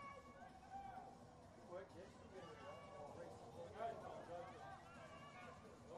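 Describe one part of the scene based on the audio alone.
A crowd of spectators shouts and cheers outdoors at a distance.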